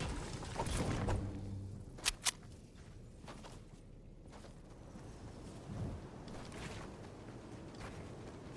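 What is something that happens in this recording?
Game building pieces snap into place with sharp clicks.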